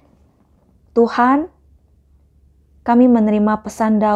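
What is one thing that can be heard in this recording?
A woman reads aloud calmly into a close microphone.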